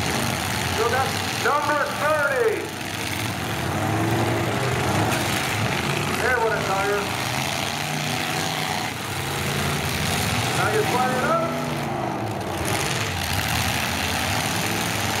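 Car engines roar and rev close by.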